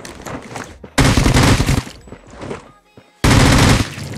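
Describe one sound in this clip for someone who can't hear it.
A gun fires in loud rapid bursts.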